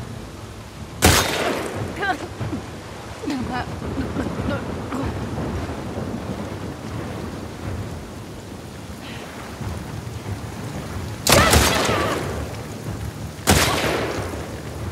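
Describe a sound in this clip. Rifle shots ring out loudly with echoing tails.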